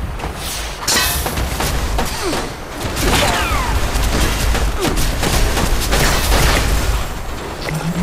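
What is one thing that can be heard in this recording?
An energy weapon fires rapid crackling bursts.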